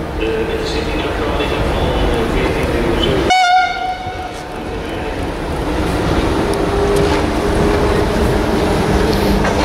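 A train rumbles closer along the tracks.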